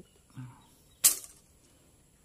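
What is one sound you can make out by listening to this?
A heavy log thuds as it is pushed on the ground.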